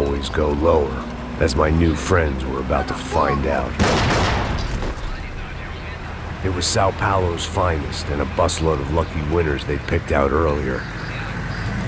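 A man speaks in a low, calm voice, close to the microphone.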